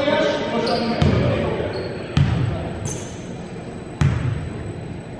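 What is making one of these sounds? A basketball bounces on a hard floor in a large echoing gym.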